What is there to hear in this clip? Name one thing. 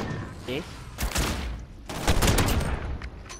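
A rifle fires a loud shot that echoes.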